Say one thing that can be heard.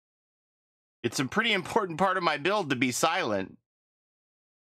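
A middle-aged man talks with animation into a microphone, close by.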